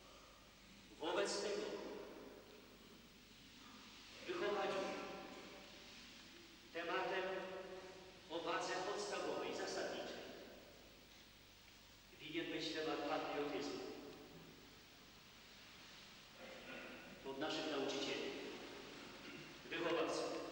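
A man chants slowly, his voice echoing through a large hall.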